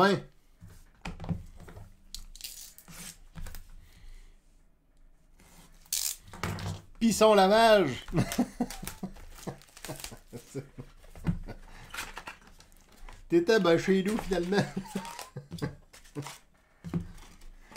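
Card packs rustle and crinkle as hands open them.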